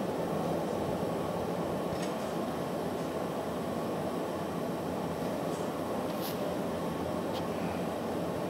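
A furnace roars steadily nearby.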